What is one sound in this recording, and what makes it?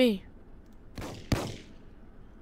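A cannon fires with a sharp bang.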